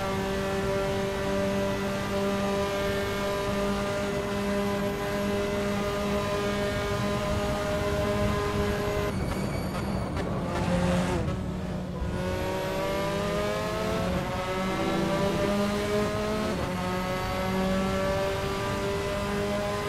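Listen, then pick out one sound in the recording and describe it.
A racing car engine screams at high revs.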